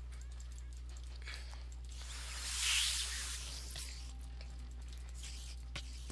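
A spider creature hisses and chitters close by.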